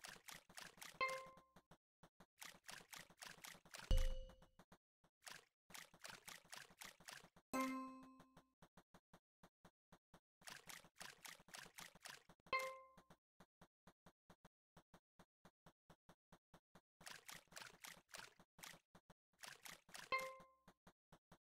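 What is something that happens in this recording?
A bright chime rings as a spot comes clean.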